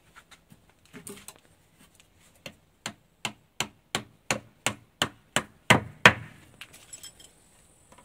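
A hammer taps a nail with quick, sharp knocks.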